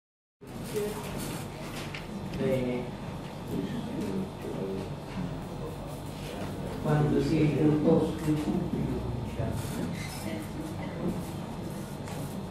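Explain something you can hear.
A woman speaks calmly into a microphone in an echoing room.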